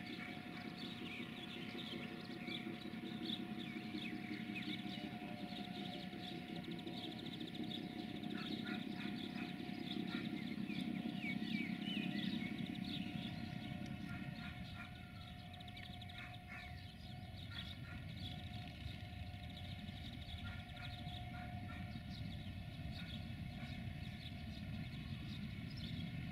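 A diesel locomotive engine rumbles as it moves slowly along the tracks.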